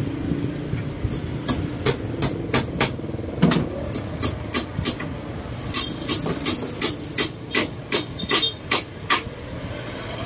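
A small tool taps sharply and quickly on wicker.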